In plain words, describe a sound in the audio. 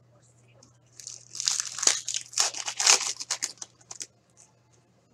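Plastic wrapping crinkles close by.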